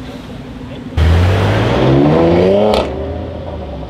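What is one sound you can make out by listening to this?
A car accelerates hard past close by with a roaring engine.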